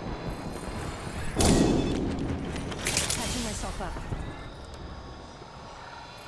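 A medical syringe hisses and whirs as it is used.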